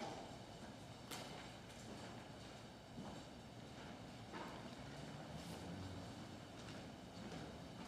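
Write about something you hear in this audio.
Footsteps shuffle softly across a wooden floor in a large echoing hall.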